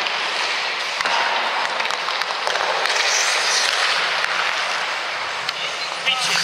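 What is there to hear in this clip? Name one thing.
Hockey pucks clack against sticks and the boards.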